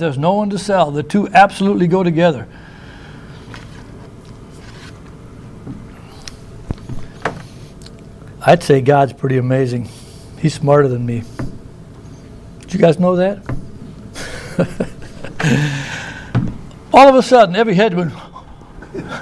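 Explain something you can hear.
A middle-aged man reads aloud calmly through a microphone, with pauses.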